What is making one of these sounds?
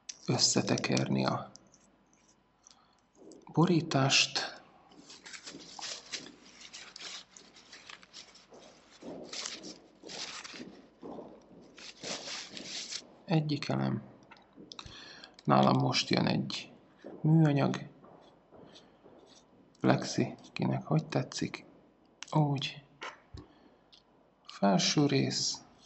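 Small metal parts click and scrape as they are screwed together.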